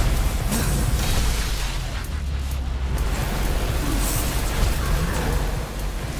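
A deep rumble of crumbling rock booms.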